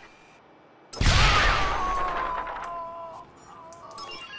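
A loud explosion bursts and rings out, then fades.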